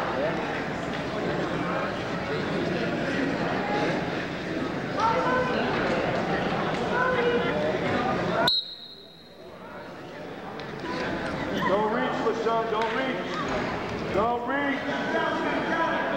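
Men shout and call out from the sidelines in a large echoing hall.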